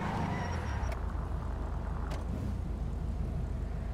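Tyres screech on the road as a car spins.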